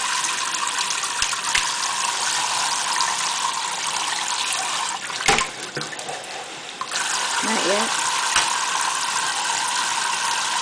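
Water from a faucet sprays and splashes steadily into a metal sink.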